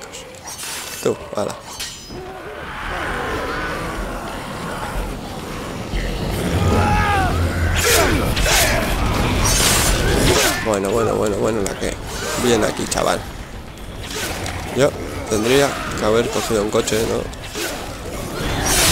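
A blade hacks into flesh with wet thuds.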